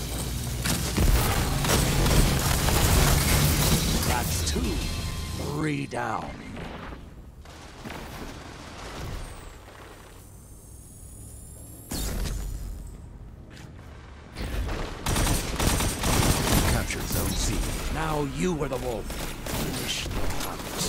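Explosions boom and roar loudly.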